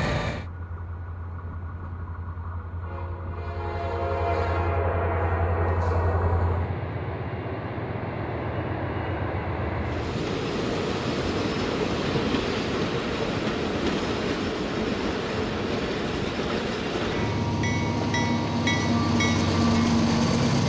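A diesel locomotive engine rumbles and drones as a train passes.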